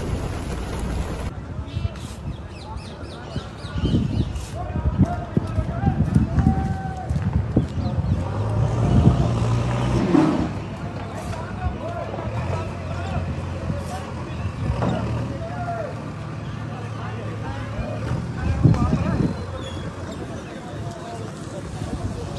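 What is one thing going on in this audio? Wind gusts roughly across the microphone outdoors.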